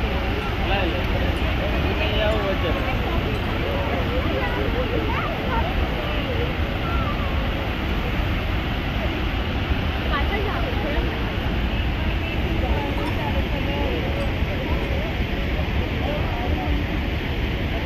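A huge waterfall roars steadily and thunders into the river below.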